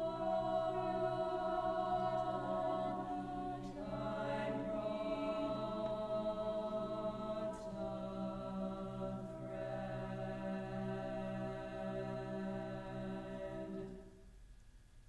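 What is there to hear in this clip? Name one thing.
A mixed choir sings held chords together in a large hall.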